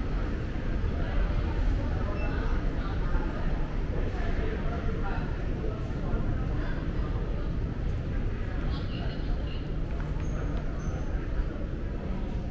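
Distant voices murmur in a large echoing hall.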